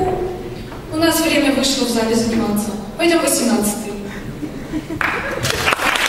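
Two young girls sing together in a large echoing hall.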